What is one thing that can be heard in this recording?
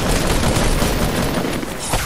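Rapid gunfire rings out.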